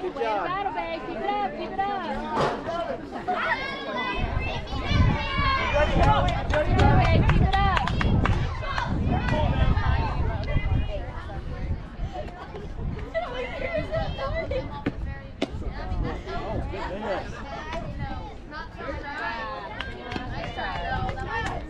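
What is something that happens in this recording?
Many voices of girls and adults cheer and shout outdoors.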